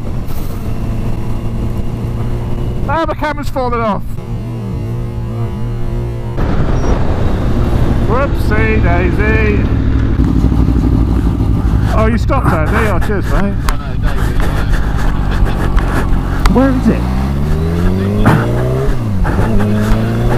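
A motorcycle engine roars, its pitch rising and falling as it shifts gears.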